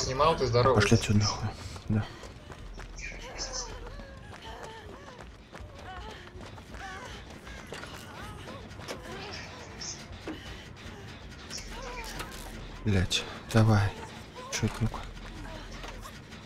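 Footsteps run quickly over dirt.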